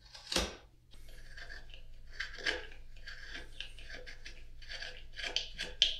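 A marking knife scores across wood in short scraping strokes.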